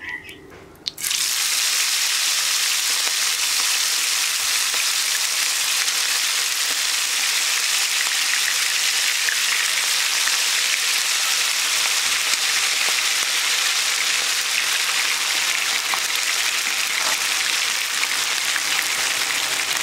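Chicken pieces sizzle loudly in hot frying oil.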